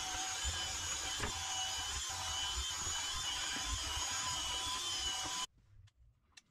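A cordless drill whirs steadily, driving into wood.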